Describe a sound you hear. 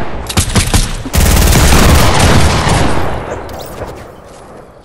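Loud gunfire and a blast ring out, then fade.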